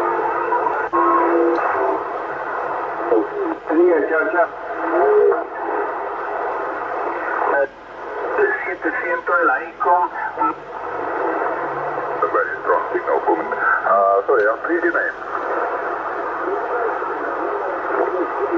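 A radio receiver hisses with loud static as it is tuned across stations.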